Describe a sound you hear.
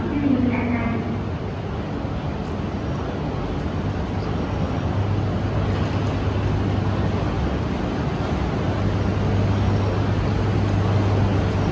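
A train rolls in with a low rumble that slowly grows louder.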